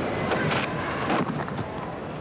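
A cricket bat knocks a ball with a sharp crack.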